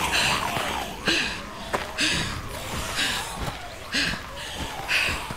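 Footsteps crunch through grass.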